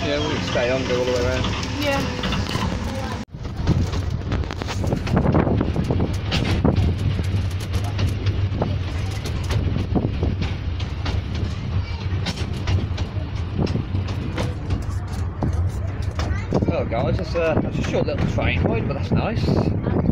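A small train rumbles and clatters steadily along the rails.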